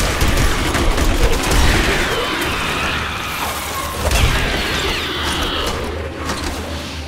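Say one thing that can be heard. Magic blasts crackle and hiss.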